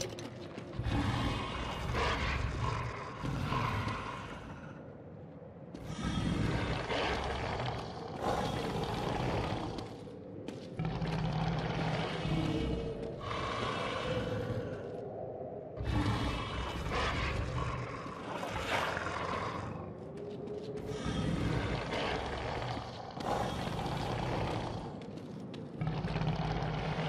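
Footsteps scuff slowly on a hard floor.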